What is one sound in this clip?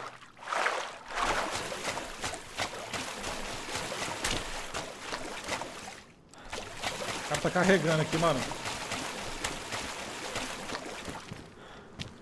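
Water splashes and swishes as someone wades through reeds.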